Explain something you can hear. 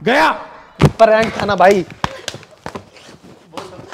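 A hand slaps a man sharply.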